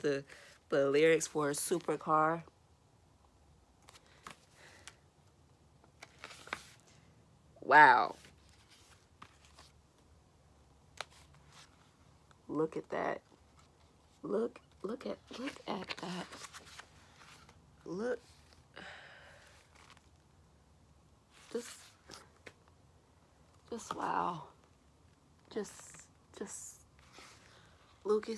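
A young woman speaks softly and calmly close by.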